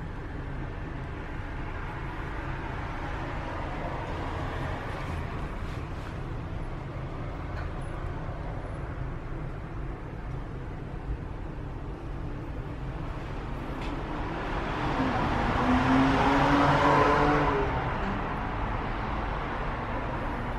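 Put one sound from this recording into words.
A tram rumbles and rattles along, heard from inside.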